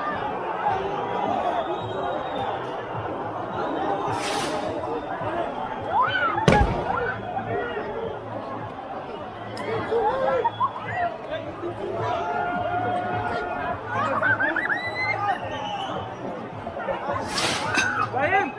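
A crowd of men and women shout and talk loudly outdoors.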